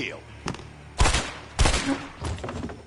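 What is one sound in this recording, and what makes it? A pistol fires two loud shots.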